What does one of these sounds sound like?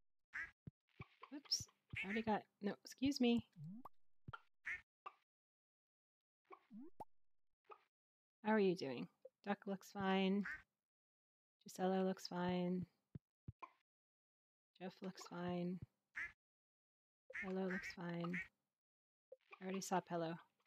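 Chickens cluck in short bursts.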